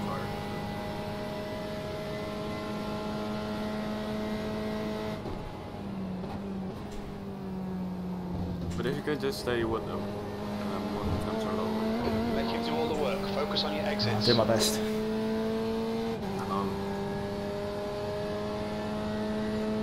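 A racing car engine drones steadily, shifting pitch as gears change.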